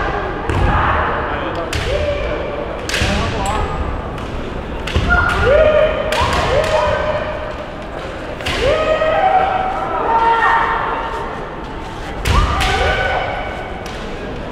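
Bamboo swords clack and strike against armour, echoing in a large hall.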